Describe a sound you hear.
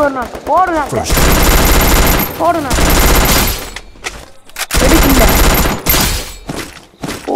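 Gunfire crackles in quick bursts.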